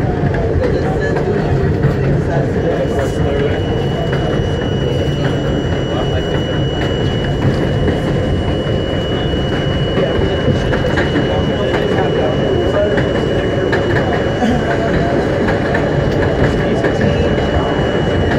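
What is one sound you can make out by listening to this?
A train rumbles steadily along elevated tracks.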